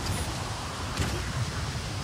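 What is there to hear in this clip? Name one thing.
Water sprays steadily from a fountain.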